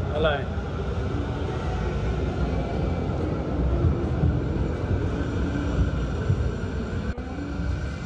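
A tram rumbles past close by.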